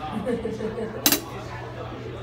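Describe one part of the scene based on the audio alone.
A drum is struck once, sharply.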